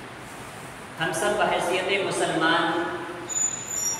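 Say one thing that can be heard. A young man speaks calmly and clearly into a microphone.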